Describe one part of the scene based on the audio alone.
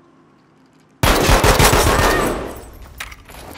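An anti-tank rifle fires a single booming shot that echoes in an enclosed room.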